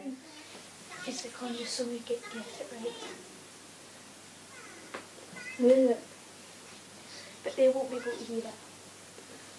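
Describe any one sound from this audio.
A young girl sings close by in a room.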